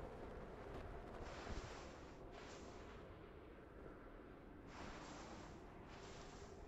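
Strong wind blows in rising and falling gusts.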